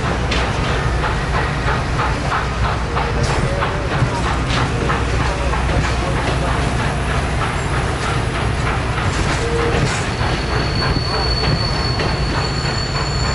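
Train wheels click rhythmically over rail joints.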